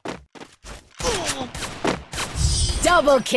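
A submachine gun fires a burst.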